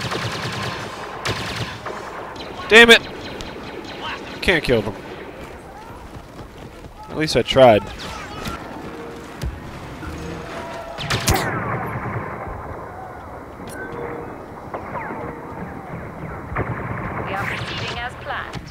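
Blaster shots fire in short bursts.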